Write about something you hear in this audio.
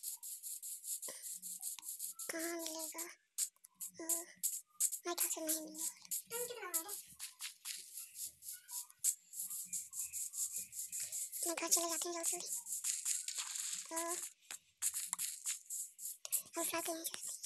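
Footsteps crunch on grass and dirt at a steady walking pace.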